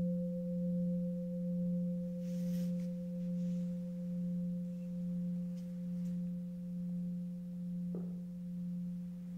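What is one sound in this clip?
A large bell hums steadily with a slow pulsing, gradually fading.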